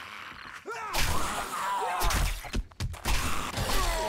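A knife strikes a body with heavy thuds.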